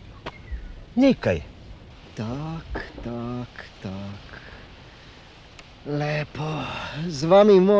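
A middle-aged man speaks with animation nearby.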